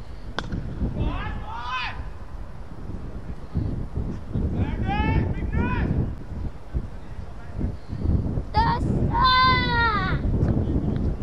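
Men shout loudly across an open field.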